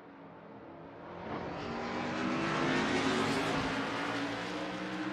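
A race car engine grows louder as it passes close by.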